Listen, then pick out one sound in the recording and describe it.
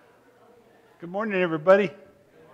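A man speaks loudly over a loudspeaker in a large echoing hall.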